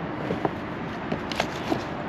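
Items clatter and rustle in a plastic bin.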